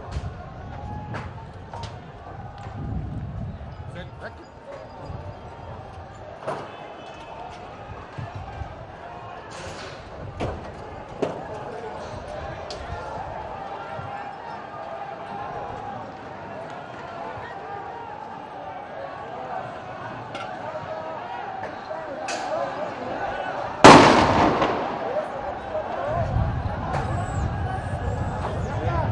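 A crowd of men shouts and chants in the distance outdoors.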